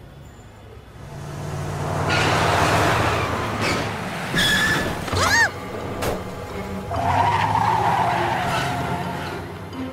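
A van engine revs and the van speeds away.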